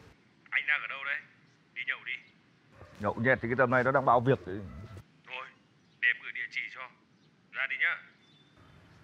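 A man talks on a phone close by, in short bursts.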